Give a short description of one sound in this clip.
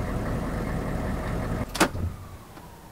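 A heavy vehicle's engine rumbles, then cuts off.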